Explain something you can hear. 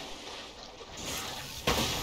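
Thunder crackles in a sudden electric burst.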